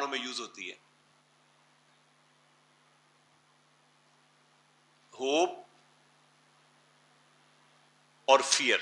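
A man speaks in short bursts, as if teaching.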